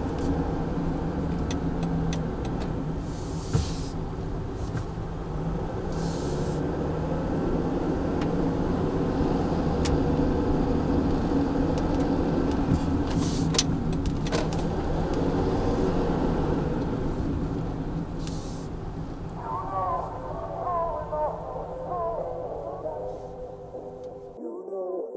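A car engine hums steadily with road rumble from inside the car.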